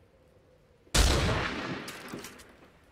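A gunshot bangs loudly and echoes away.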